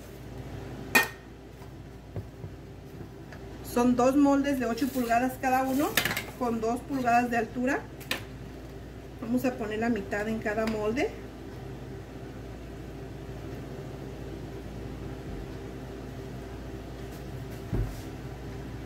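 A metal pan clinks on a tiled counter.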